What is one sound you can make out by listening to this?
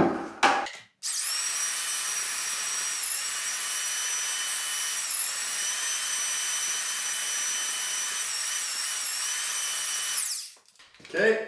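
An electric drill mixer whirs steadily in a bucket.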